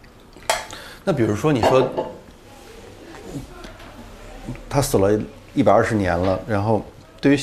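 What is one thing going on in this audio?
A middle-aged man speaks calmly and thoughtfully, close by.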